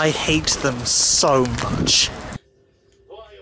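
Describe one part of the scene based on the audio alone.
A young man speaks loudly and with animation close to the microphone.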